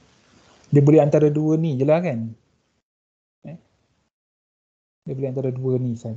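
A man explains calmly, heard through an online call.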